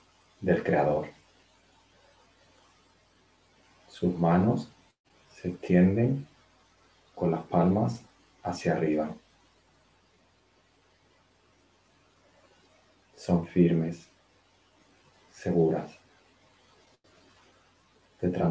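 A young man speaks calmly in short phrases with long pauses, heard close through a webcam microphone.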